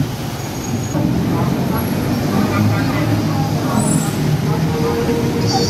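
A crowd of people murmurs while walking past nearby.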